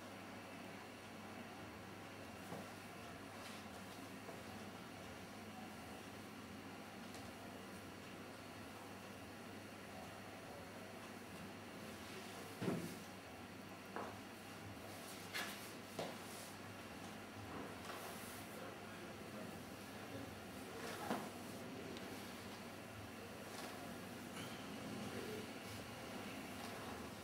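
Hands rub and press softly on bare skin.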